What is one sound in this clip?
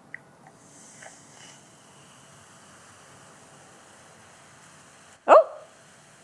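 Powder pours softly into a glass.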